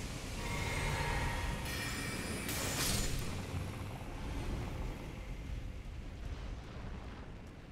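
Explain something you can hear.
A low rumbling drone hums throughout.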